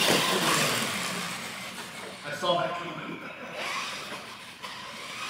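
A small electric motor whirs as a toy car speeds across a hard floor.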